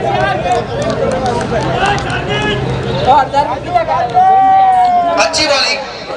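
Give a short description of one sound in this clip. Young men shout and cheer outdoors in celebration.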